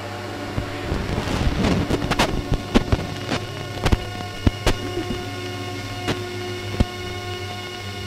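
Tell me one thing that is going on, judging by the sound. Sharp electronic clicks and crackles burst out in a busy flurry.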